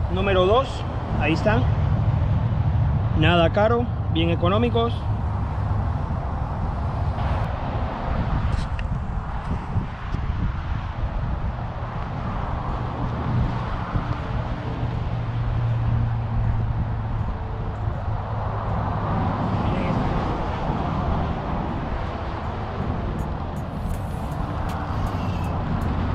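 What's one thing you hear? Wind blows outdoors by open water.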